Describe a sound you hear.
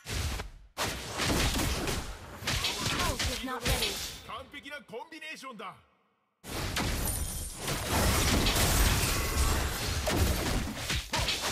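Fantasy battle effects whoosh, blast and crackle rapidly.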